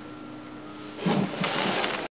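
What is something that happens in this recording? A hand rubs and ruffles a cat's fur close by.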